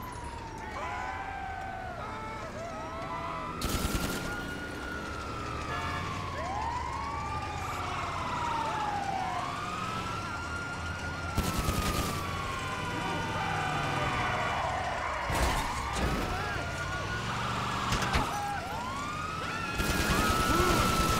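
An ambulance engine roars as it drives fast.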